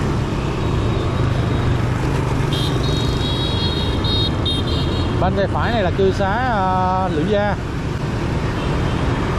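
A motorbike engine hums steadily up close.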